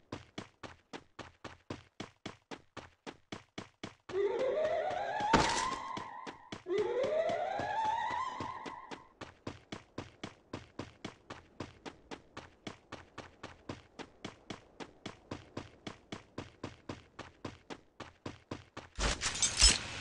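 Quick footsteps run over grass.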